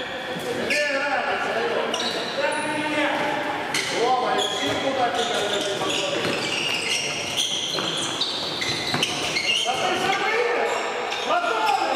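Men's voices call out across an echoing sports hall.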